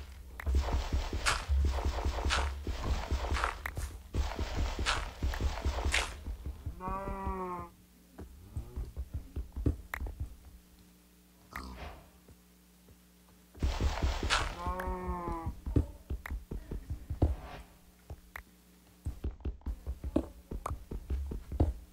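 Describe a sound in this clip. Pickaxe blows chip and crack stone blocks in a quick, repeated rhythm.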